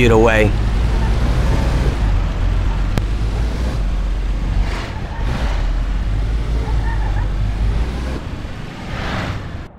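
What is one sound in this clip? A car engine rumbles steadily as it drives along.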